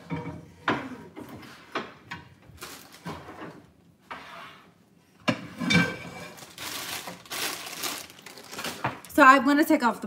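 Utensils clatter against a pan.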